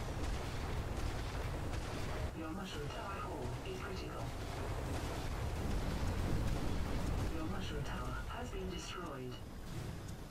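Guns fire in rapid bursts with explosions.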